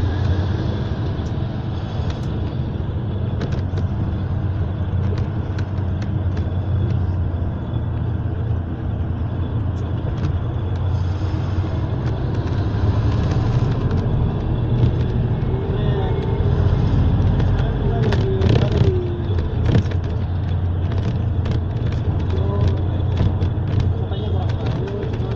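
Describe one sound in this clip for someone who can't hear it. An engine rumbles steadily inside a moving vehicle.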